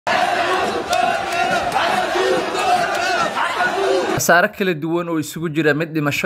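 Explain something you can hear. A large crowd of young men cheers and shouts outdoors.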